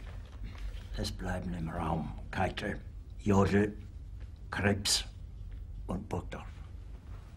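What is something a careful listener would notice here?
An older man speaks in a low, tense voice.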